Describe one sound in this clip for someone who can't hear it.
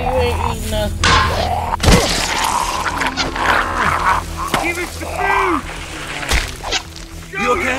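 A man struggles and grunts with effort.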